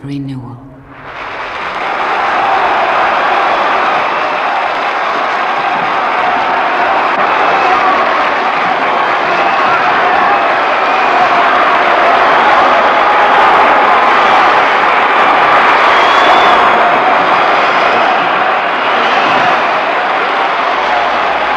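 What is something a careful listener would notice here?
A large crowd applauds loudly and steadily in a big echoing hall.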